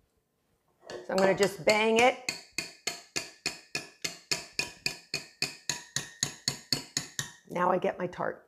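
A wire whisk clatters quickly against a metal bowl.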